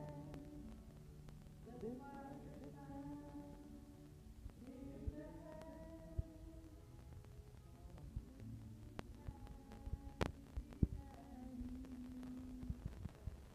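Acoustic guitars strum together.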